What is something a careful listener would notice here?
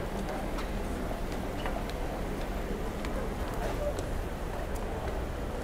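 A busy city street hums around outdoors.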